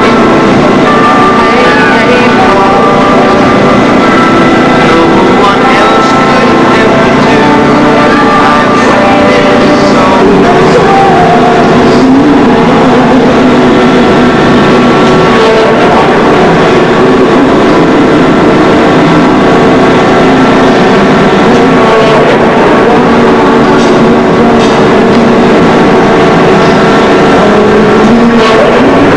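A swinging ship ride rushes back and forth with a creaking sound.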